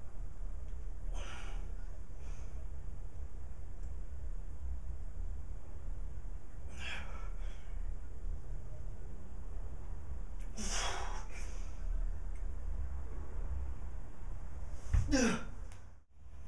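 A man breathes out hard in short bursts.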